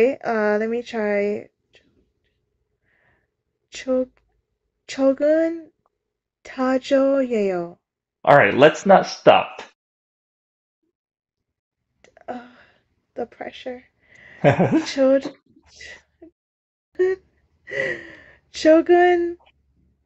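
A woman speaks with animation over an online call, in short bursts with pauses.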